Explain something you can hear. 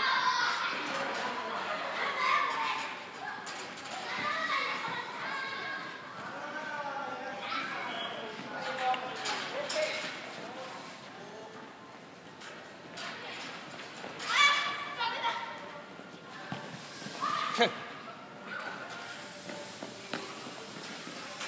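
Children shout and call out excitedly in a large echoing hall.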